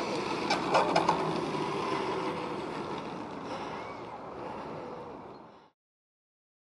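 A model plane's engine buzzes loudly as it taxis, then fades.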